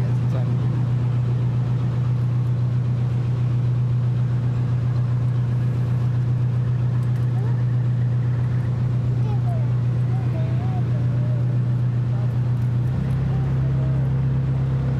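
A boat engine hums steadily and close by.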